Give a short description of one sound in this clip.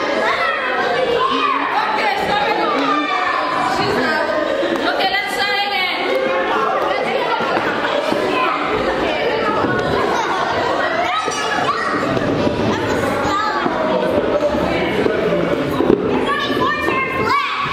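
Young children and women chatter and call out close by.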